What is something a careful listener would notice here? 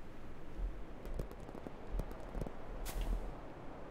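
Short electronic blips sound from a game.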